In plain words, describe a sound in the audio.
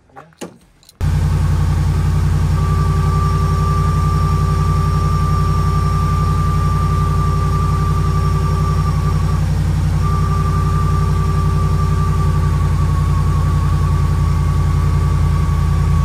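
A van engine idles with a steady low rumble.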